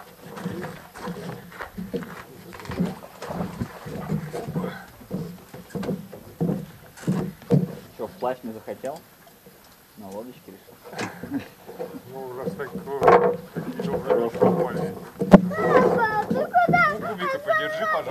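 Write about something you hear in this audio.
Footsteps thud on wooden boards close by.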